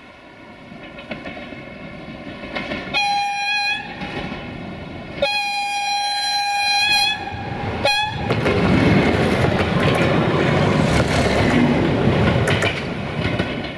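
A train rumbles out of a tunnel and passes close by, growing louder.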